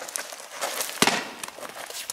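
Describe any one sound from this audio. A fruit splats against a stone wall.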